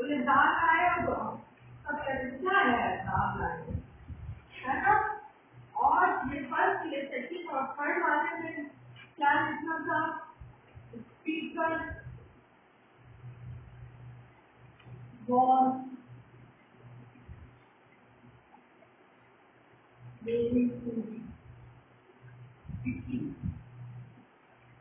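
A woman speaks clearly and steadily, close by.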